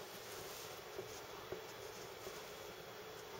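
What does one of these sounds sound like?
A small plastic object taps lightly against glass a few times.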